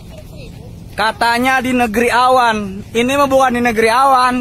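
A young man talks loudly and with animation close to the microphone.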